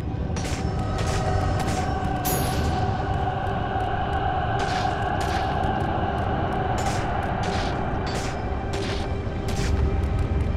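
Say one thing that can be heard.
Footsteps clatter quickly on stone steps.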